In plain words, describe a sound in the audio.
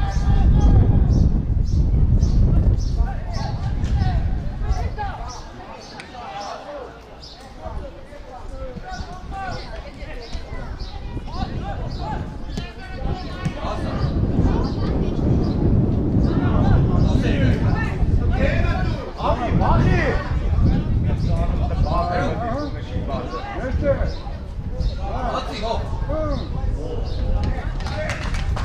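Men shout to each other across an open outdoor pitch.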